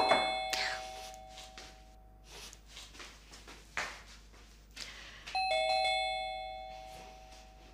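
Footsteps walk across a wooden floor.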